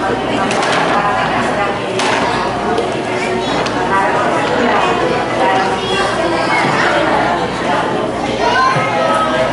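A young woman speaks with animation into a microphone, heard through loudspeakers.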